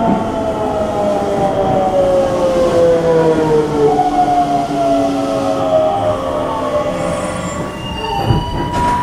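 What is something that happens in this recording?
A train brakes with a falling whine as it pulls into a station.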